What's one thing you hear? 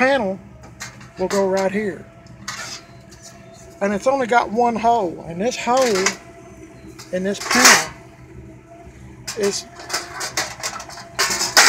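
Thin metal panels rattle and clink as they are handled.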